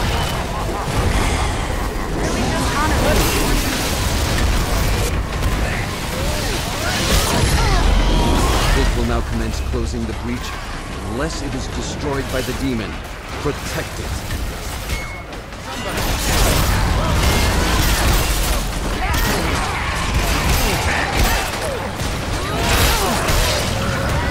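Monsters snarl and shriek.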